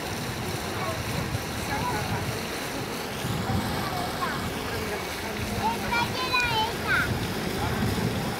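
A young child babbles and squeals close by.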